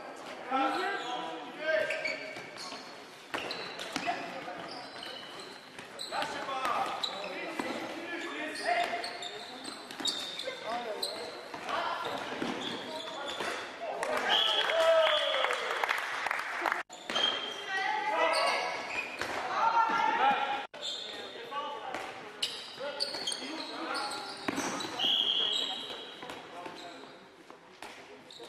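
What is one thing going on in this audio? Spectators close by talk and cheer with animation in a large echoing hall.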